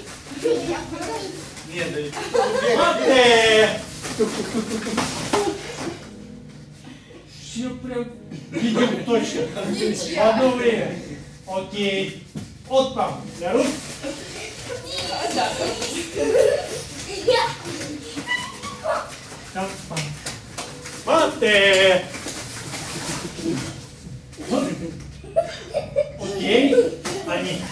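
A man calls out instructions loudly in an echoing hall.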